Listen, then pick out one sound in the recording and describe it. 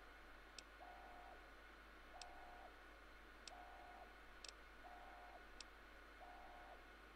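A computer terminal gives short, steady beeps, one after another.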